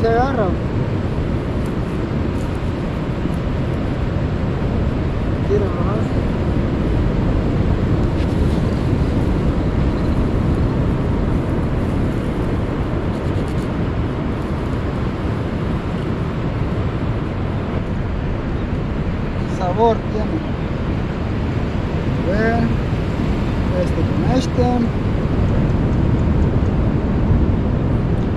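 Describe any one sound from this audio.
Wind blusters steadily outdoors.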